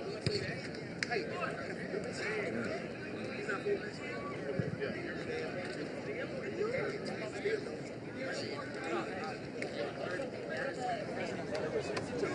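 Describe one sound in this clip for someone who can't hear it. A crowd of men talks and calls out at once outdoors, with voices overlapping.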